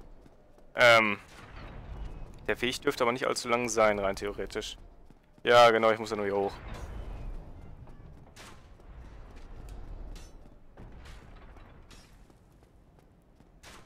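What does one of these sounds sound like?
Footsteps run quickly across stone.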